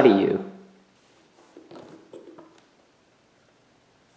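A metal case latch clicks open.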